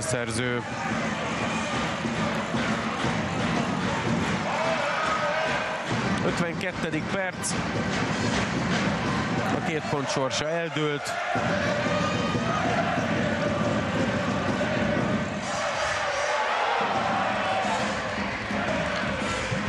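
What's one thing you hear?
A large crowd cheers and chants steadily in an echoing arena.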